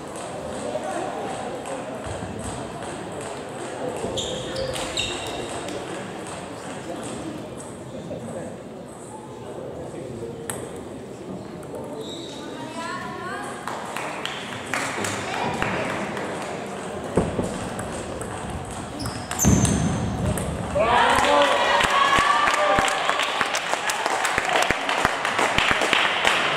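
Ping-pong balls click against paddles and tables in a large echoing hall.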